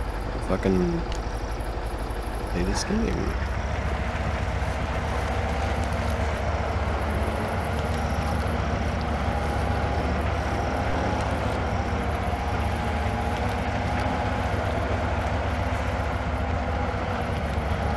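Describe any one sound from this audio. A truck engine rumbles steadily, straining as it crawls over rough ground.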